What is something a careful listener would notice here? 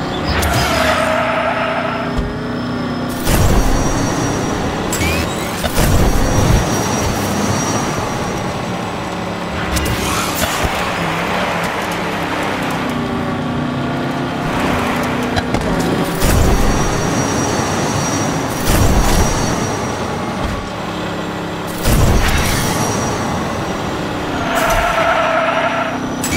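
A race car engine roars and whines steadily.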